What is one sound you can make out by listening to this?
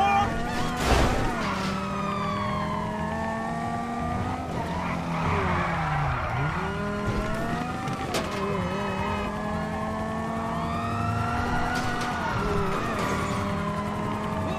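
Tyres screech as a car skids around corners.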